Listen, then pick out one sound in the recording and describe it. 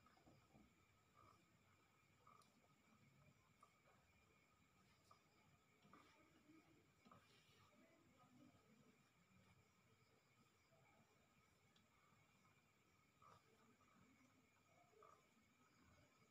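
Hands rub softly over bare skin.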